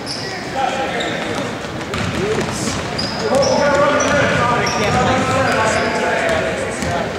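Young spectators chatter and shout in an echoing gym.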